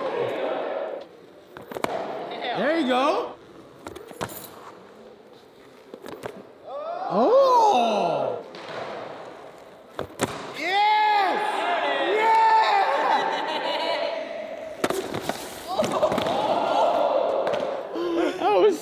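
Voices call out in a large echoing hall.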